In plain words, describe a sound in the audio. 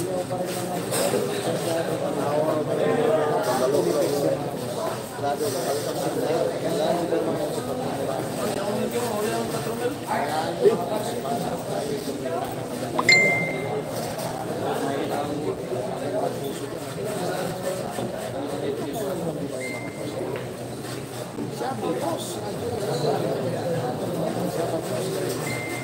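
A crowd of young people chatters nearby.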